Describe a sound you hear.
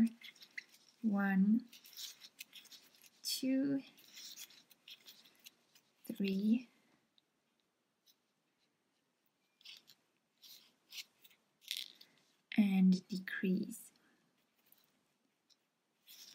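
A crochet hook softly rustles and clicks against yarn.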